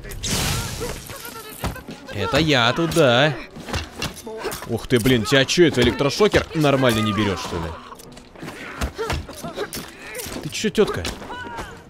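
Punches and kicks land with heavy thuds in a fast brawl.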